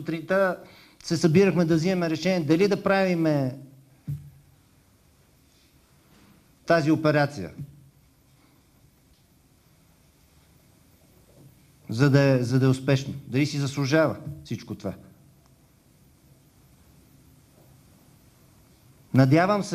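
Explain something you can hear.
A middle-aged man speaks calmly into a microphone, in pauses.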